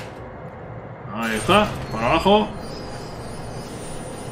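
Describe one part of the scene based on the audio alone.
A heavy metal lever clunks into place.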